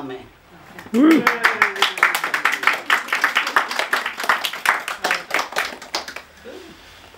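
A group of people applaud and clap their hands.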